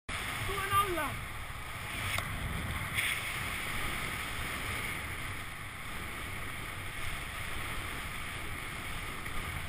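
Wind rushes and buffets steadily past the microphone outdoors, high in the air.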